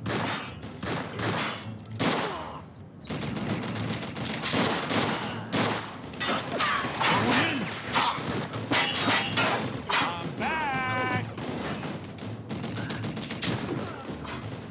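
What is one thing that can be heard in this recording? Gunshots crack and echo in rapid bursts.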